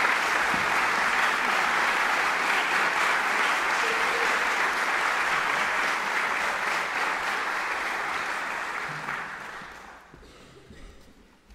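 An audience applauds loudly in a large hall, and the applause fades away.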